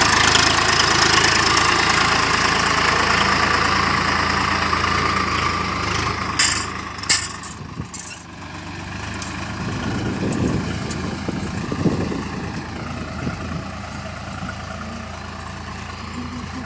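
A diesel tractor engine chugs as it pulls a cultivator through soil.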